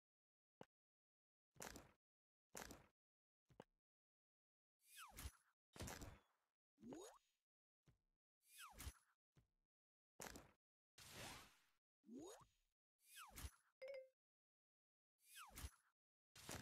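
Game blocks pop and burst with bright chimes and swooshes.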